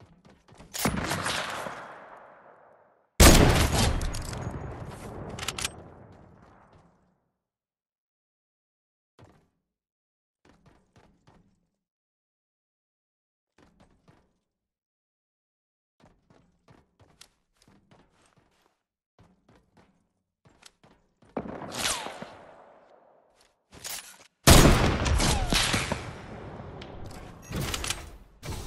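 A sniper rifle fires loud booming shots that ring out and fade.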